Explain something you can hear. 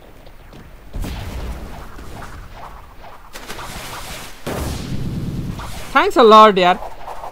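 Heavy whooshing blasts and impacts of a game's combat effects burst out in quick succession.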